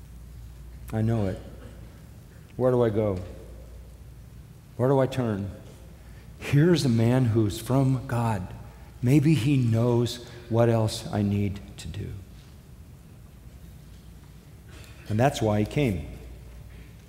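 An elderly man speaks slowly and deliberately into a microphone, with long pauses.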